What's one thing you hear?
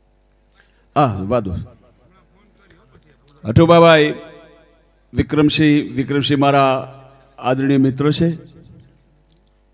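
A middle-aged man speaks and chants loudly through a microphone in long, forceful bursts.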